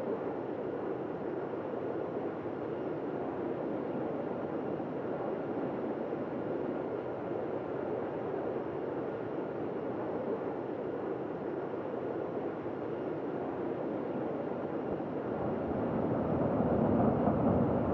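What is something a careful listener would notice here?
Jet engines roar steadily, growing louder toward the end.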